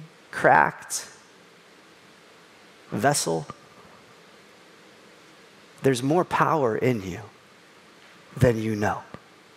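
A man speaks with animation in short bursts through a microphone.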